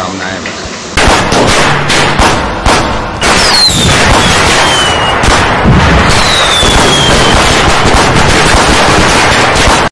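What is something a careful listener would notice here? Fireworks bang and crackle loudly.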